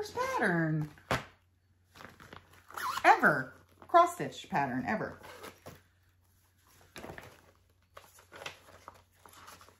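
A plastic bag crinkles as it is opened.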